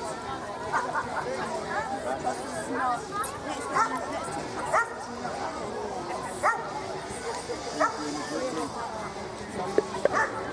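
A crowd of men and women chatter at a distance outdoors.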